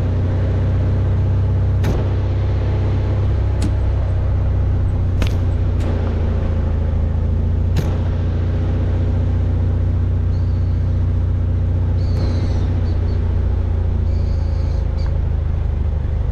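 Tall grass brushes and scrapes against the side of a vehicle.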